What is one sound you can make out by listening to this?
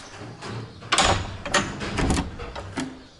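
A door handle clicks.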